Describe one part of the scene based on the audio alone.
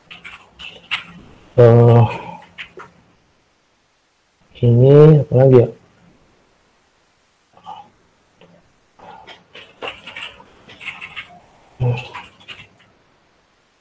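A man speaks through an online call, pausing often.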